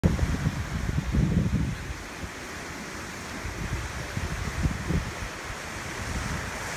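Wind blows in gusts across the microphone outdoors.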